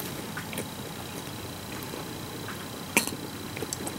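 A woman sips a drink from a glass.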